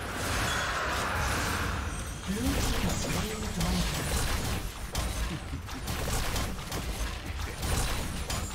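Video game spell effects crackle and burst as characters fight.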